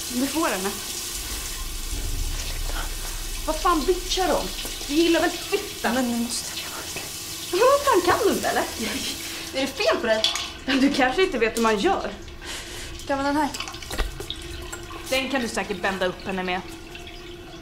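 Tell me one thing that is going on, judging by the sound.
Young women talk tensely with one another close by.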